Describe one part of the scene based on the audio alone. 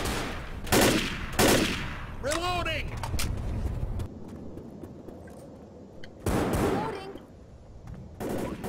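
Loud gunshots ring out one at a time.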